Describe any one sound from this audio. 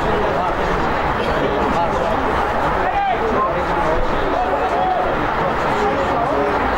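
A crowd of men and women shout and cheer outdoors.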